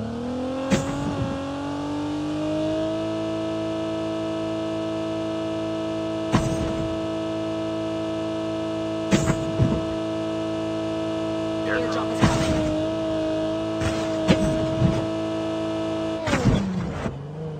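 A car's wheels thud over bumps in the road.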